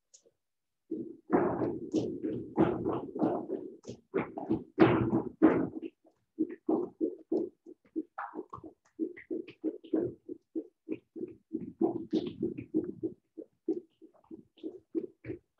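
Quick footsteps thump on a hard floor.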